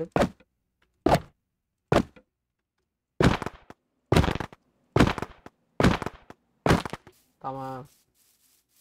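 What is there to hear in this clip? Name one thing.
A sword strikes a target dummy with sharp thuds.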